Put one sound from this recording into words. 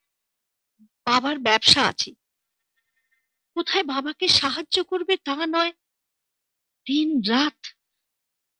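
A middle-aged woman speaks in a close, clear voice.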